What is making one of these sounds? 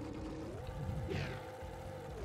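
A magical whoosh sweeps by with a falling shimmer.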